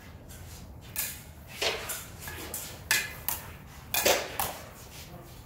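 Practice swords clack and clash together sharply.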